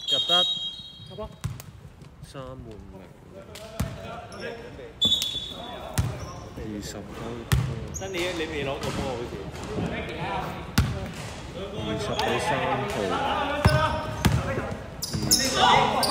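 Young men call out to each other during play, with a hall's echo.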